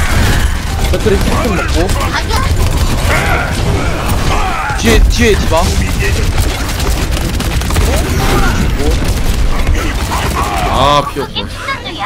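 Gunfire and explosions crackle loudly in a video game.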